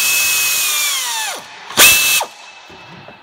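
An air tool whirs loudly with a hiss, then winds down.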